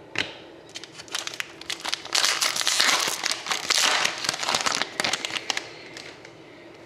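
A plastic wrapper crinkles between fingers.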